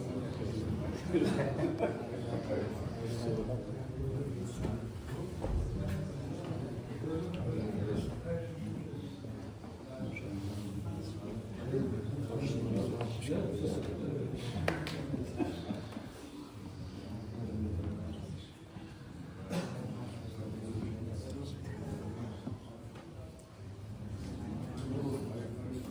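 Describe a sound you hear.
Several men talk and greet each other warmly nearby, their voices echoing in a large room.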